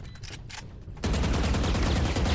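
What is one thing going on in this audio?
Rapid gunfire rattles from a video game.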